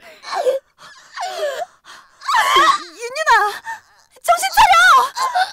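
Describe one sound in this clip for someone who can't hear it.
A young woman speaks in a high, animated voice close to a microphone.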